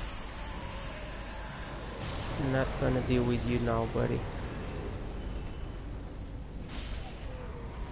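Armoured footsteps clank on cobblestones.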